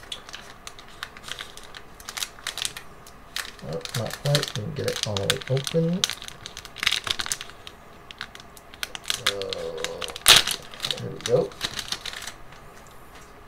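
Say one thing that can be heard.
A foil wrapper crinkles and rustles in hands.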